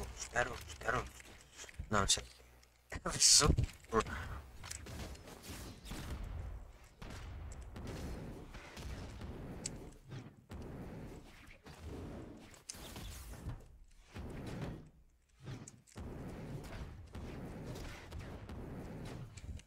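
Punchy video game hits and whooshes go off in quick bursts.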